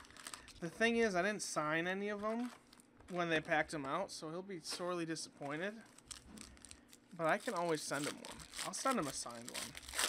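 A foil pack crinkles as it is handled and torn open.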